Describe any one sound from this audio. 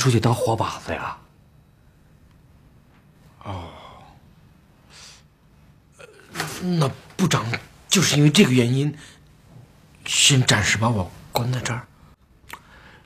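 A middle-aged man speaks in a worried, pleading voice close by.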